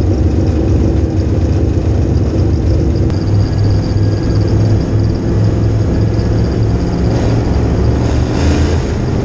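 A race car engine roars loudly from inside the cockpit.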